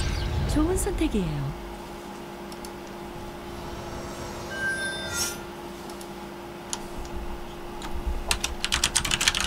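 Video game sound effects chime and clatter.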